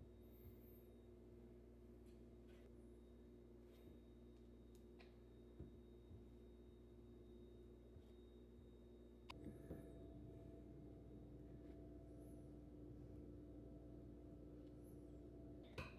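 A knife scrapes butter across slices of bread.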